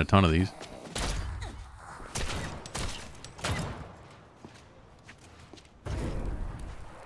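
Heavy blows thud wetly into flesh.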